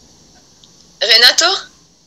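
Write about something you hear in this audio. A young woman speaks through a video call.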